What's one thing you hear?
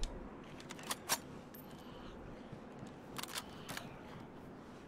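Gear and a rifle rattle as a soldier moves.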